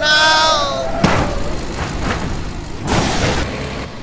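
A car crashes hard with a loud bang.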